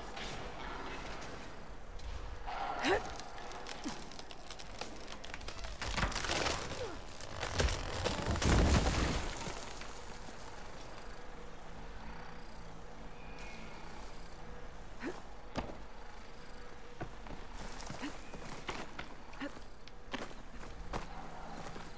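Hands and feet scrape and knock against rock while climbing.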